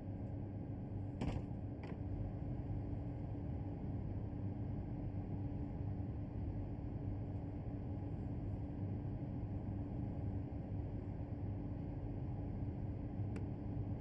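A train's motor hums steadily at rest.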